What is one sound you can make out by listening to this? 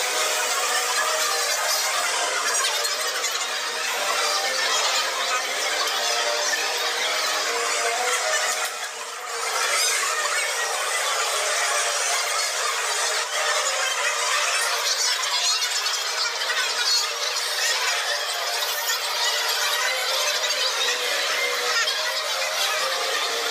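A crowd of men and women chatter in a room.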